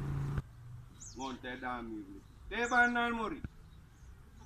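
A man speaks loudly nearby, outdoors.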